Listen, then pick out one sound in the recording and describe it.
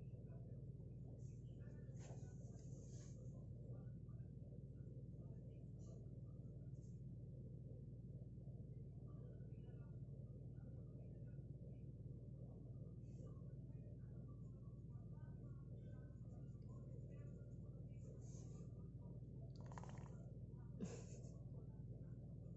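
A young girl speaks softly nearby.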